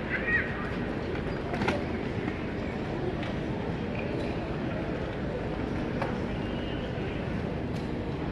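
Luggage trolley wheels rattle across a hard floor.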